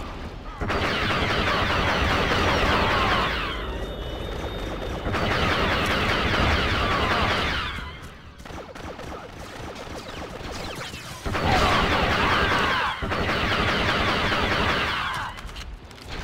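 Laser blasters fire in rapid bursts of zapping shots.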